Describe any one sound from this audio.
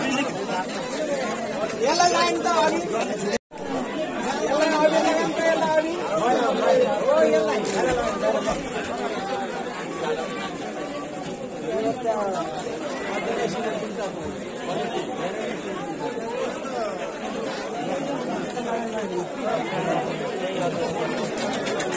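A crowd of young men shouts and cheers loudly close by.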